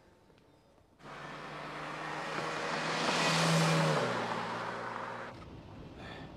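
A car engine roars as a car drives past.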